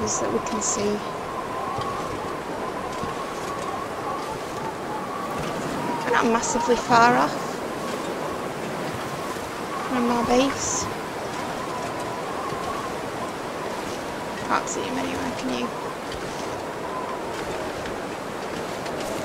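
Wind blows steadily through falling snow.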